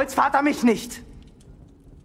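A young man speaks forcefully nearby.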